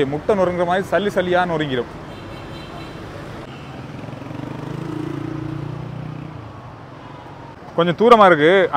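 Traffic engines hum along a busy street.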